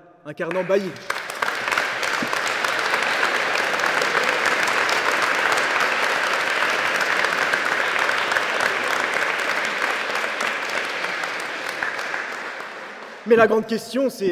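An audience applauds steadily.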